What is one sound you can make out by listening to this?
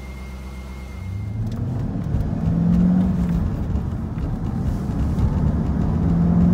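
A car engine revs and roars as the car pulls away.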